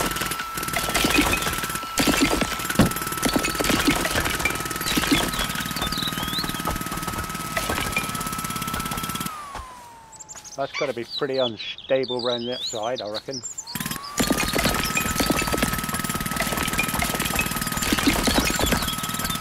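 Bricks crack and tumble down.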